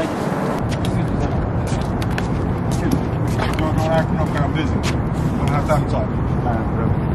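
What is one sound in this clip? Footsteps tap on a paved walkway.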